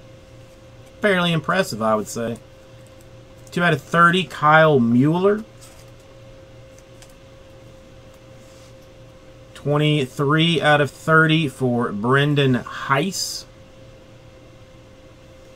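Cardboard trading cards rustle and slide in hands.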